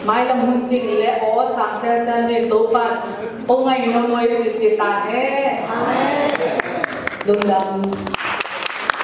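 A group of young children sings together in an echoing hall.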